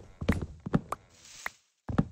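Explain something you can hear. Leaves rustle and crunch as they are broken apart.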